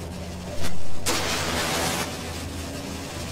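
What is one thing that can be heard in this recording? A flare ignites with a loud fizzing hiss.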